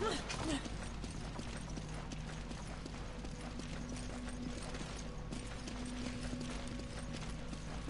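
Boots thud on stone as someone runs.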